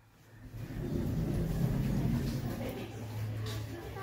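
Lift doors slide open.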